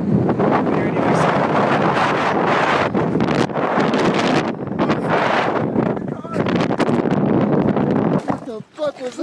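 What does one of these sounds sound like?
Strong wind roars loudly into a microphone outdoors.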